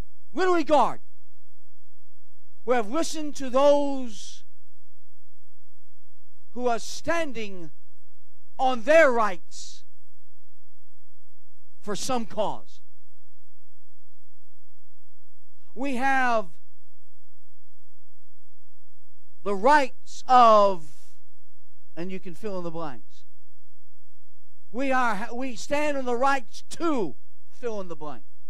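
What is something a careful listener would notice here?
An elderly man speaks emphatically into a microphone, in short bursts with long pauses.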